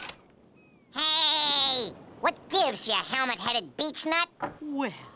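A cartoon bird speaks in a high, squawky voice with animation.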